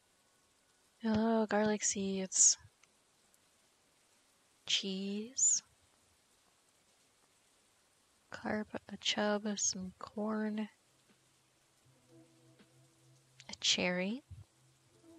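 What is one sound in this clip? A young woman talks animatedly into a microphone, close up.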